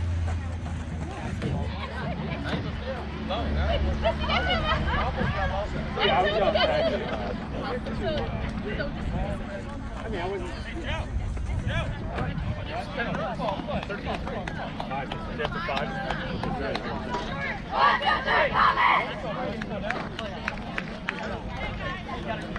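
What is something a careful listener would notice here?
Young players shout and call out to one another across an open field.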